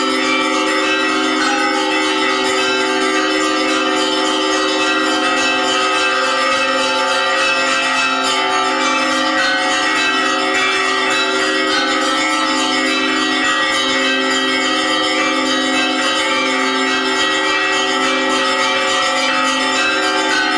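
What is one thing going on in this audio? A crowd of men and women sings a slow, steady chant together outdoors.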